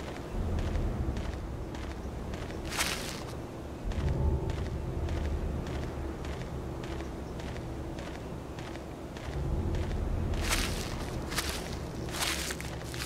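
Footsteps crunch on a dirt path at a steady walking pace.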